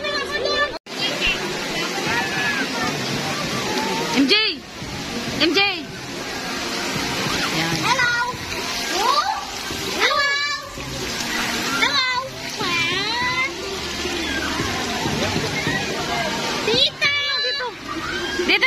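Water splashes and laps as people wade in a pool.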